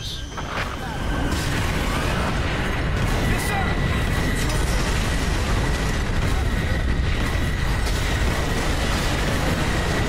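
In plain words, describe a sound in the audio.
Rockets launch with sharp whooshes.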